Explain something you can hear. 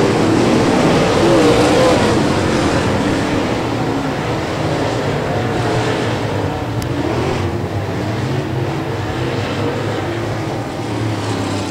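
Race car engines roar loudly as the cars speed past.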